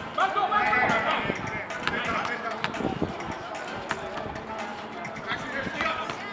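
A basketball bounces on an outdoor court.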